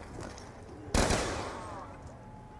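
A gun fires a loud burst.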